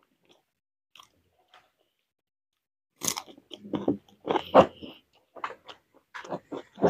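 Fingers squelch through soft food in a bowl.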